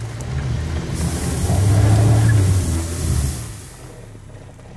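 Tyres spin and spray sand and gravel.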